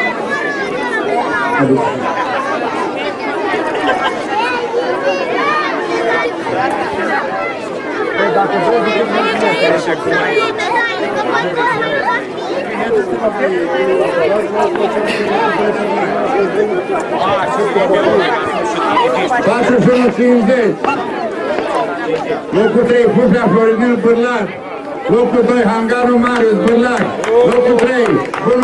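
A crowd of children and adults chatters and shouts outdoors.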